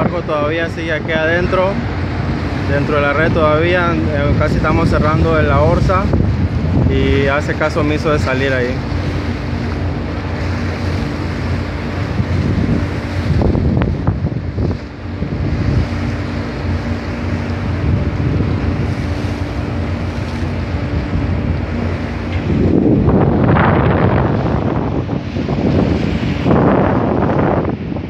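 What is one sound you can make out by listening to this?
Wind rumbles and buffets loudly outdoors on open water.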